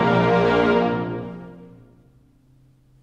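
An orchestra holds a final chord that fades away in a large echoing hall.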